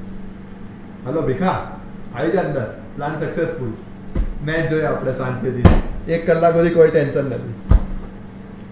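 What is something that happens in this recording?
A young man talks cheerfully on a phone close by.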